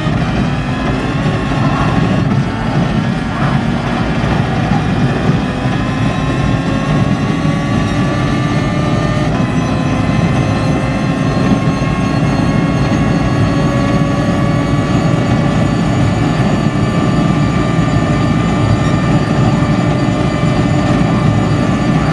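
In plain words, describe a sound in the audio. A racing car engine roars at high revs, its pitch climbing steadily through the gears.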